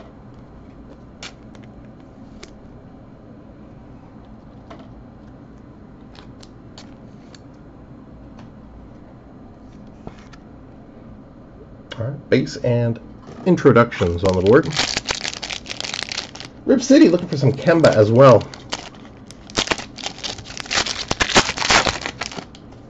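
A foil wrapper crinkles and rustles close by.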